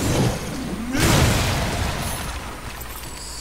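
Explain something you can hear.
Ice shatters with a loud crash.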